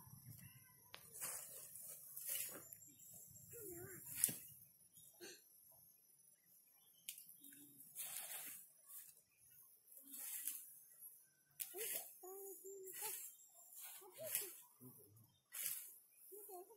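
Seeds patter onto loose soil as they are scattered.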